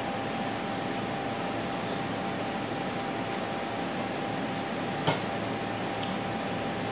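Fingers mix rice on a plate with soft squishing sounds.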